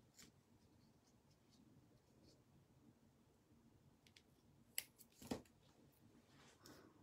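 Paper rustles and taps as hands handle it.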